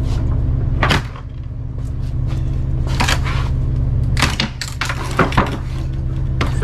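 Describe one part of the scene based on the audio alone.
A metal hand truck clanks as it is tipped and moved.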